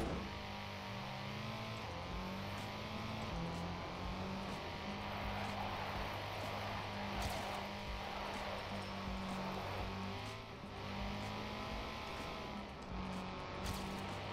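A racing car engine roars and revs up and down through gear changes.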